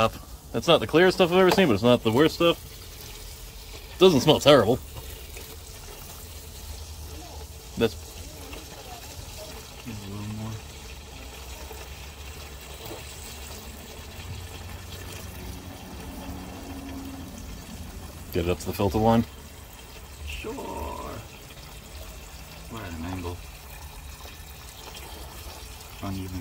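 Liquid trickles and splashes steadily below.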